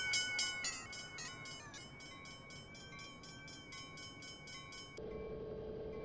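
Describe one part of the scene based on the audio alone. A railway crossing bell rings rapidly.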